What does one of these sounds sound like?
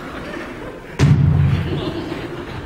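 A person jumps down onto a wooden stage with a heavy thud.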